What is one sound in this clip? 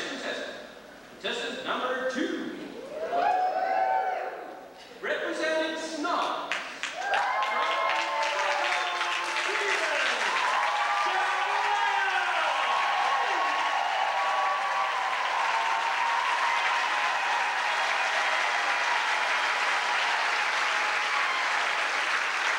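A small group of men sings together in a large echoing hall.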